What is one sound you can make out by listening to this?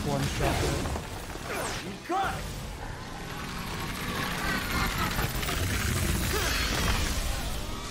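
Fiery blasts burst and roar.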